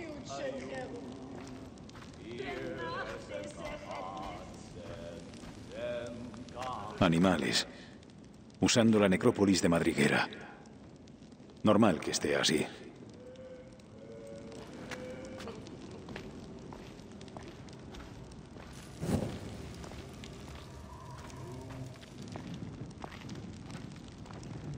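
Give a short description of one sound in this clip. Footsteps crunch on sandy ground.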